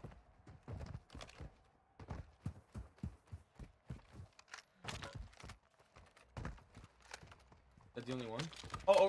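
Footsteps crunch quickly over gravel.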